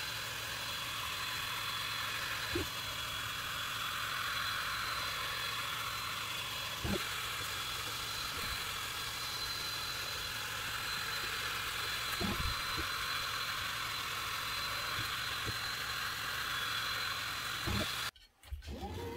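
A laser engraver's fan and motors whir steadily.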